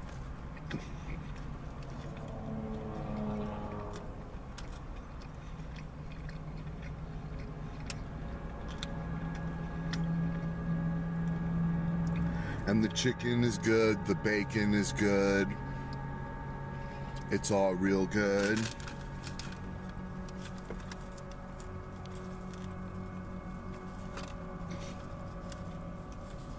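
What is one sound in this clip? A man chews food with soft smacking sounds.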